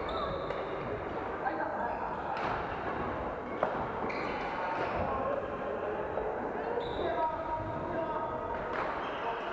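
Shuttlecocks are struck with rackets in sharp pops, echoing in a large hall.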